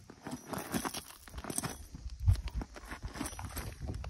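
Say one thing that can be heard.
A horse's hoof scrapes on gravel.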